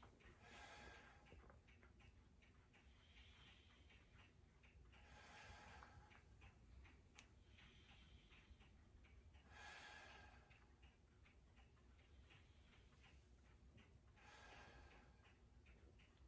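A woman breathes in and out slowly and deeply, close by.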